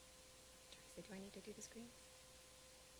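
A woman speaks briefly into a microphone.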